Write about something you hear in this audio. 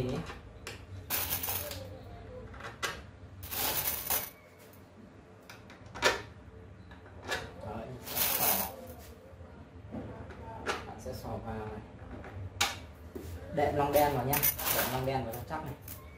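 Metal screws rattle and clink in a bowl.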